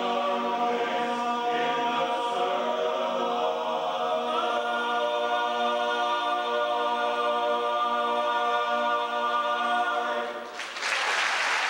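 A large choir sings sustained chords in a big hall.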